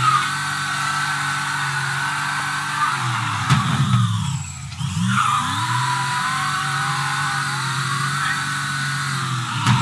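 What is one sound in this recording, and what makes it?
A car engine roars steadily, dropping away briefly before revving up again.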